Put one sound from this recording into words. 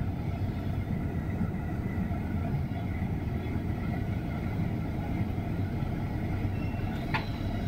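Heavy traffic rumbles steadily nearby.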